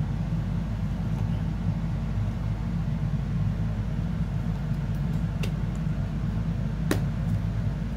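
Fingers tap and press on a plastic lid, with small clicks.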